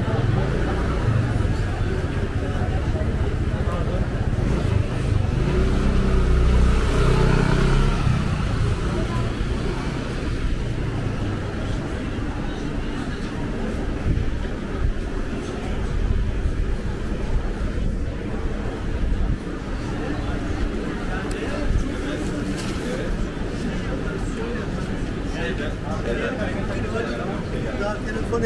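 A crowd of people murmurs in a busy outdoor street.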